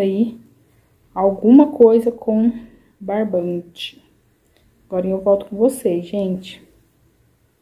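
A woman speaks calmly and close by.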